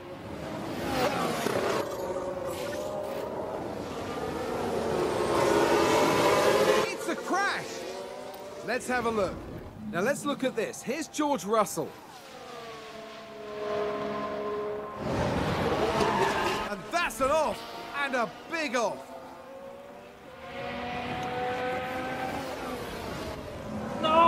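Racing car engines roar and whine past at high speed.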